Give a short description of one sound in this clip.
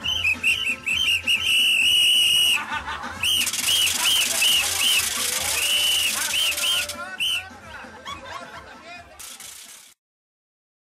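A crowd of people shouts and cheers loudly nearby.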